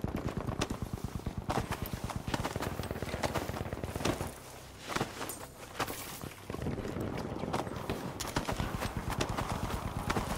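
Sandbags thud and rustle as they are stacked.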